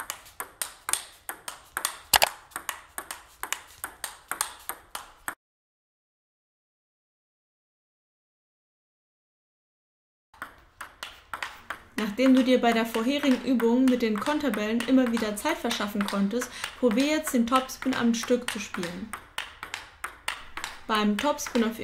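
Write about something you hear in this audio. A ping-pong ball clicks rapidly back and forth on paddles and a table.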